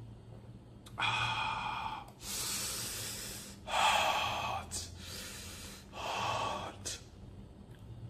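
A man groans in disgust.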